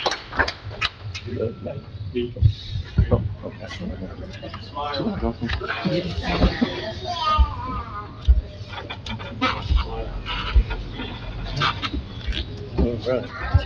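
People in a crowd murmur and chatter quietly.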